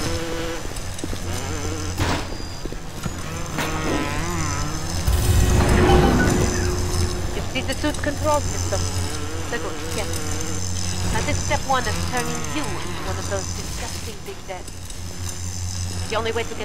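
Electricity crackles and buzzes steadily.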